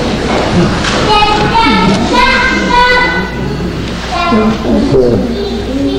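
Two violins play a melody together in an echoing hall.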